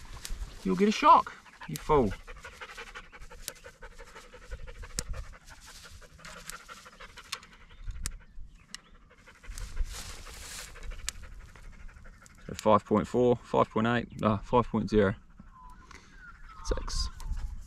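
An electric fence clicks sharply at a steady, regular pace.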